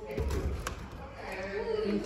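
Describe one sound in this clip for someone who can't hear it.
A door handle rattles and clicks.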